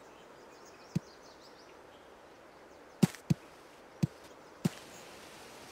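A golf ball bounces on grass.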